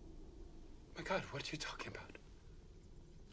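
A man speaks in a startled voice.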